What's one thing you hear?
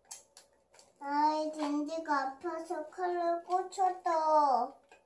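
A young boy sings loudly in a high voice nearby.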